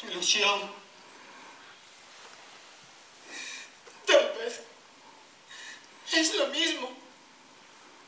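A young woman speaks with emotion through a headset microphone, in short phrases with pauses.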